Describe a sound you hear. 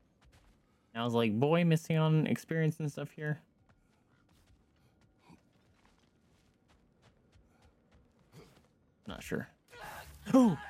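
A young man talks into a close microphone.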